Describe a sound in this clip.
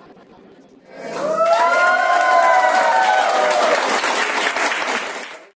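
A crowd claps loudly.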